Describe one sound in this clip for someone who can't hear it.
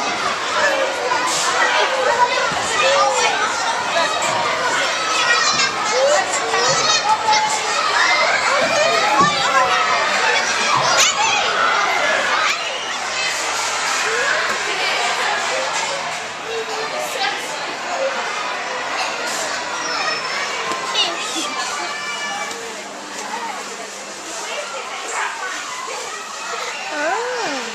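Many children shout and squeal nearby.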